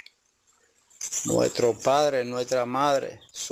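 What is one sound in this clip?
An elderly man speaks with animation.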